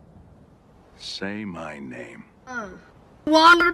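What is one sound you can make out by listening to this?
A man speaks in a low, calm voice close by.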